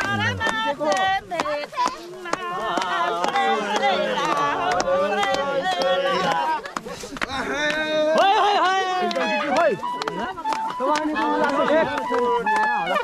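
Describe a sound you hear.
A crowd of men and women sings loudly outdoors.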